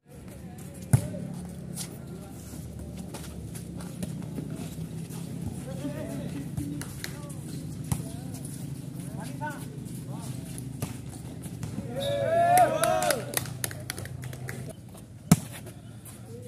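A volleyball is struck hard by hands.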